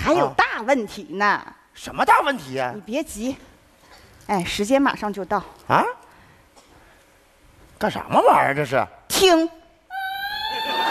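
A young woman speaks emotionally through a microphone.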